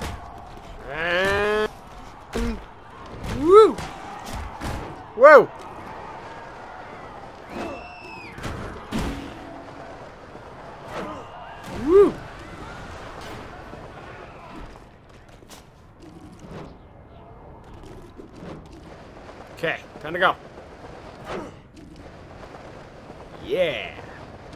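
Infected people shriek and groan.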